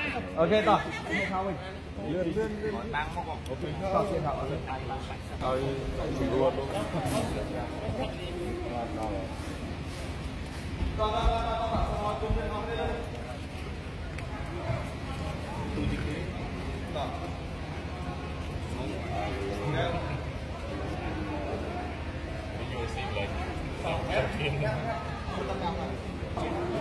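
A man speaks with animation through a loudspeaker in a large echoing hall.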